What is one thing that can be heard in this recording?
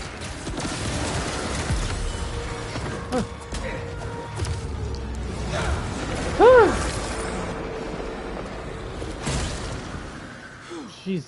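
Loud crashes and blasts ring out.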